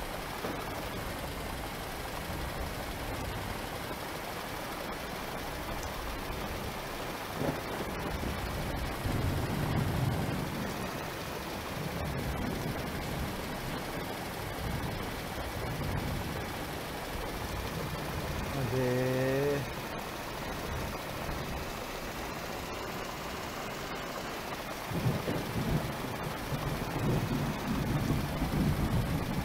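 Rain patters steadily on a windshield.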